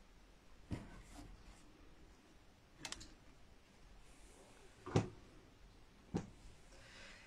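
Cloth panels rustle and flap as they are handled close by.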